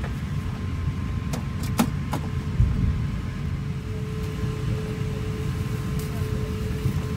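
An aircraft engine drones low and steady throughout.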